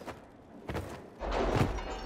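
A heavy wooden door bangs.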